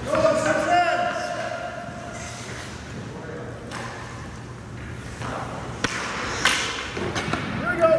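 Hockey skates scrape and carve across ice.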